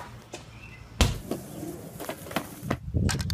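A skateboard clatters on concrete.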